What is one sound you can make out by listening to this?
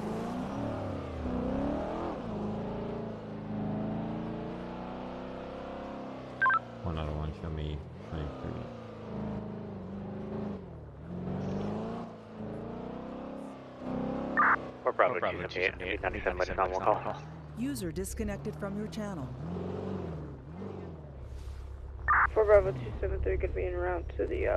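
A car engine hums and revs as the car drives slowly.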